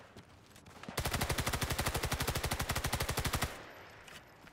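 A machine gun fires a long rapid burst up close.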